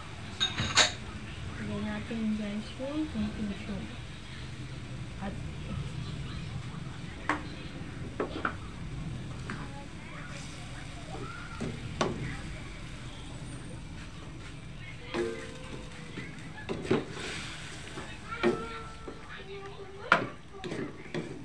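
Pork and sauce simmer and bubble in a steel wok.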